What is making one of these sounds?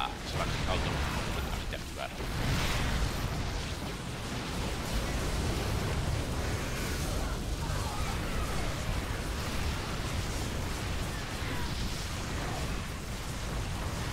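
Video game battle sounds crackle and blast steadily.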